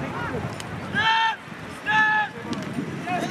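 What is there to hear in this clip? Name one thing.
A referee's whistle blows two short sharp blasts.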